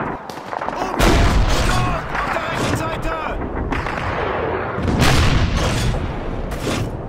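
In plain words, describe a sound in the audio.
A heavy field gun fires with deep, booming blasts that echo away.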